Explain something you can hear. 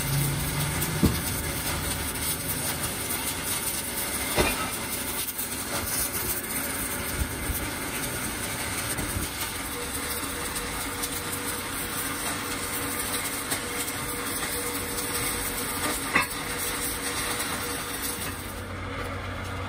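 A welding arc crackles and sizzles steadily up close.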